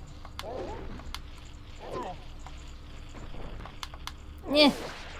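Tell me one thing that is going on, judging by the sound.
Punches land with sharp, quick thumps in a video game.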